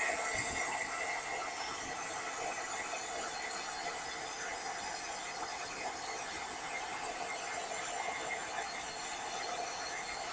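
A heat tool blows with a steady whooshing roar.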